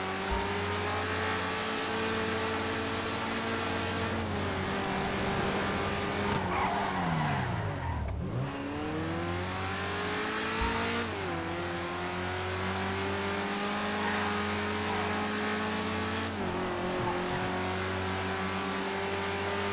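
A car engine roars steadily, shifting gears as it speeds up.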